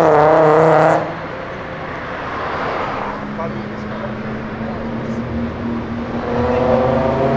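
A car engine hums steadily as it cruises along the road.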